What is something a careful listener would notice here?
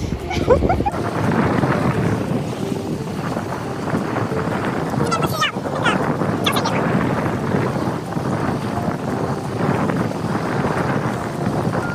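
Wind blows outdoors by open water.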